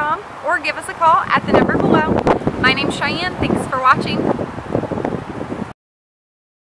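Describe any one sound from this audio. A young woman speaks cheerfully and briskly into a nearby microphone.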